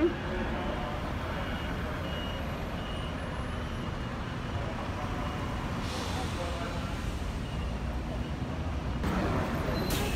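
Traffic rumbles past on a street outdoors.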